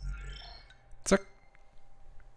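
A short click sounds as a game's menu opens.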